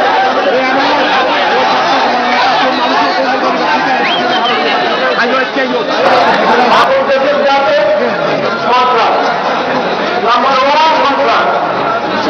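A large crowd murmurs and cheers in the open air.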